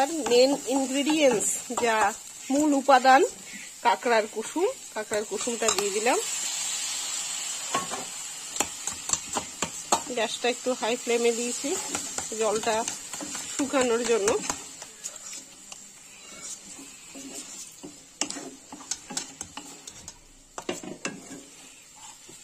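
A metal spatula scrapes and clatters against a pan.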